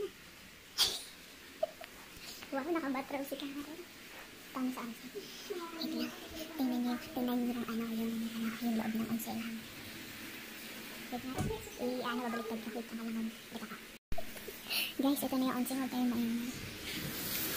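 A woman talks with animation close by, laughing at times.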